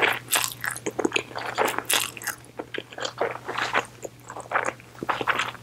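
A woman slurps noodles loudly and wetly, close to a microphone.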